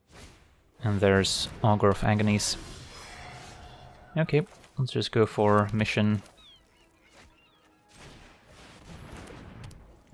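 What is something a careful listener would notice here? A magical whoosh and chime sound as game cards are played.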